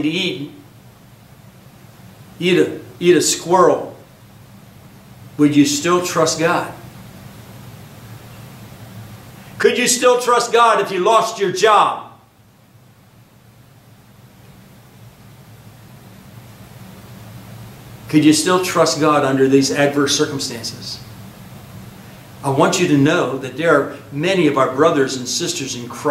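An elderly man speaks calmly and deliberately into a microphone, with long pauses.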